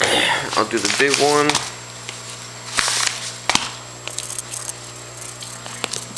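A padded envelope rustles and crinkles as it is handled.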